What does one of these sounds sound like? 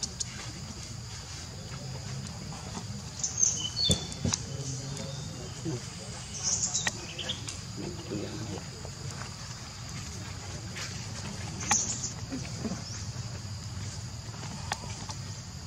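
Dry leaves rustle under monkeys' feet.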